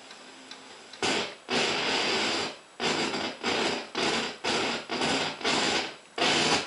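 Loud bursts of static crackle from a radio.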